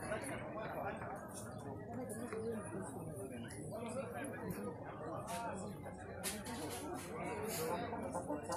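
A brass band plays outdoors, with saxophones and horns sounding together.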